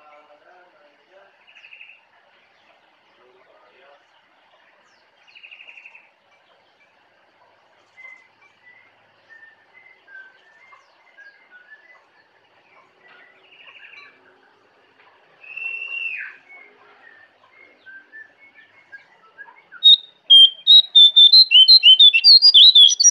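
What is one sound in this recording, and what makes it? A caged bird sings close by with chirps and whistles, bursting into loud rapid song near the end.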